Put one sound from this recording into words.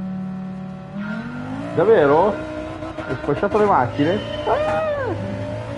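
A race car engine revs up and down sharply.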